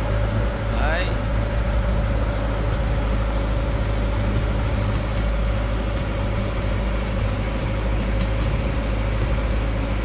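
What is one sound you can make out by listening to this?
A boat engine drones steadily nearby.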